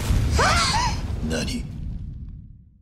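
A man exclaims in surprise.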